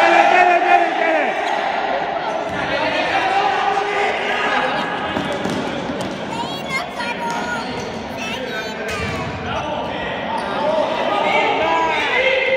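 Young men shout to each other in an echoing indoor hall.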